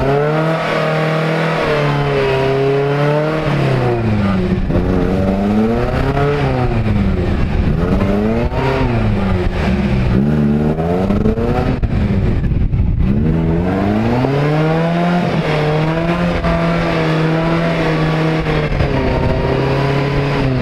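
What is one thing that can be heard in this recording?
A truck engine revs hard, rising and falling again and again.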